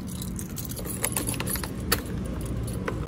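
Keys jingle in a scooter's ignition.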